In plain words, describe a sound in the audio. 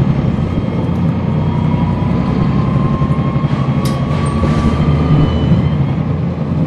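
A bus motor whines, rising in pitch.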